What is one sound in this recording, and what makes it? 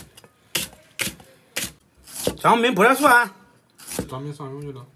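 A cleaver chops sharply on a wooden board.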